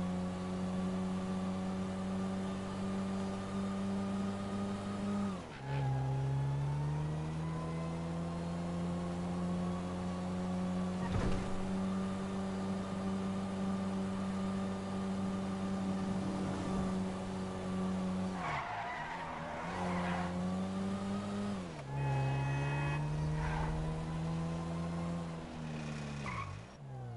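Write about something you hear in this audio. A car engine hums steadily, dropping in pitch as the gears shift and then rising again.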